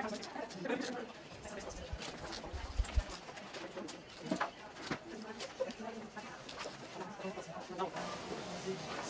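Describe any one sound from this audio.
Small plastic pieces click softly as they are handled.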